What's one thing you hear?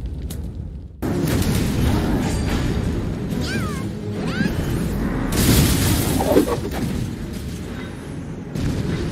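Magical blasts and crashing hits ring out in a fight.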